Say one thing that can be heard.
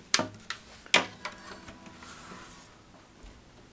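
An acoustic guitar's strings ring softly.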